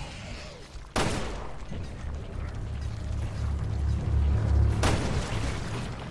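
Gunshots bang out and echo.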